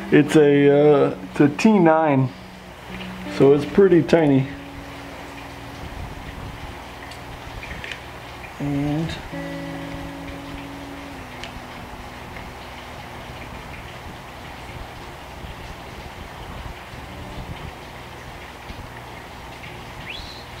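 Small plastic parts click and rattle as a handlebar switch is fitted.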